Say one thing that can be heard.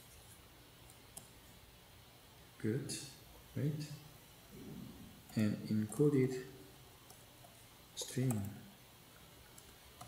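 Keys clack softly on a keyboard.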